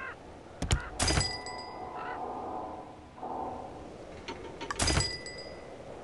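Game chimes ring brightly.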